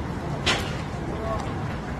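Footsteps tap on the pavement as a person walks.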